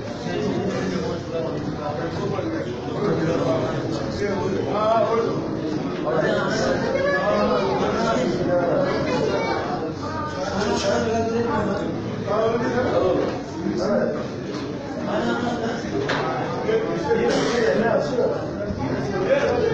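A crowd of men murmurs and talks all at once nearby.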